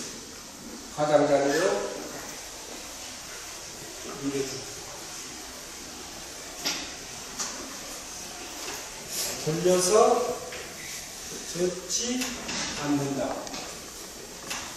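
A man lectures through a microphone, speaking in short, calm phrases with pauses.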